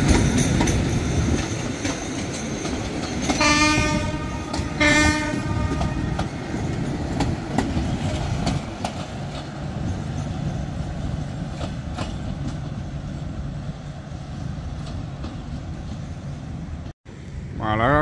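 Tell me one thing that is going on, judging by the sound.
A diesel train rumbles past close by, its wheels clattering over the rail joints.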